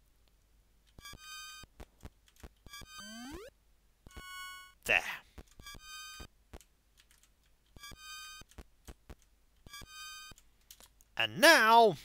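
Short electronic game beeps repeat in quick bursts.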